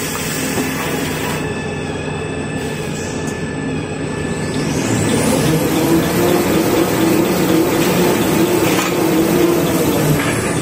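A toilet paper making machine runs with a steady mechanical hum and whir of rollers.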